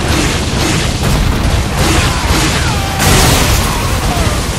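Blows and impacts crash in quick succession.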